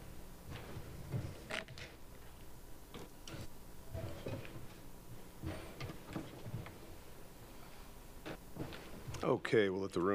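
A man speaks calmly and quietly into a microphone.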